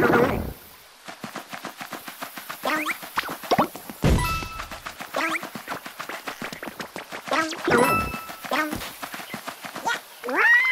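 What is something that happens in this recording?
Quick, light footsteps patter steadily.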